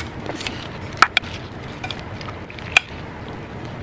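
A spoon clinks against a ceramic dish.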